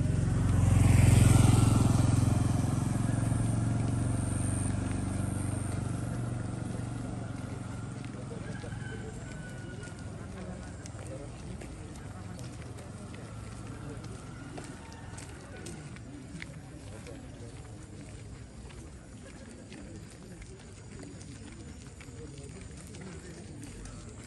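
Footsteps scuff on the road.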